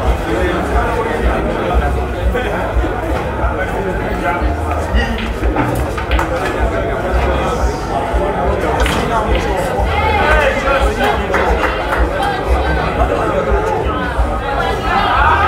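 A crowd of young men chatters loudly nearby.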